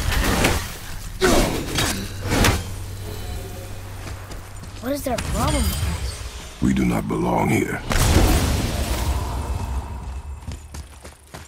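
Heavy footsteps run over stone.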